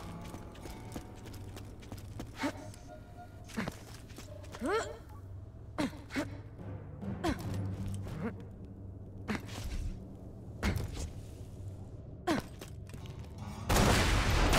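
Footsteps thud steadily on hard ground.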